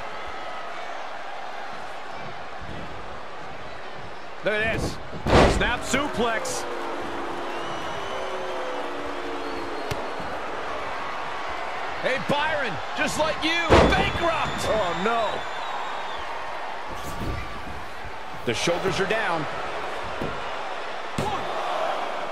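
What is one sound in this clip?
A crowd murmurs and cheers in a large arena.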